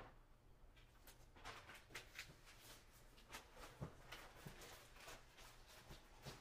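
Paper rustles and taps as it is handled.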